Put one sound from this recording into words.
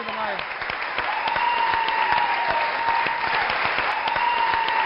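An audience claps along in rhythm.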